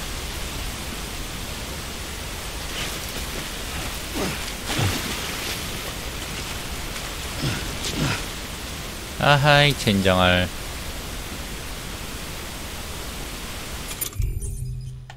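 Water rushes and churns steadily around rocks.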